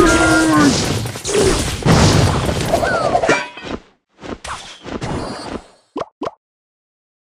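Game battle effects clash and crash with bursts of noise.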